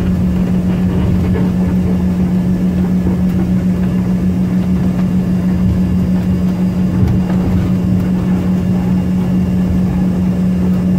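Jet engines of a regional jet hum steadily, heard from inside the cabin as it taxis.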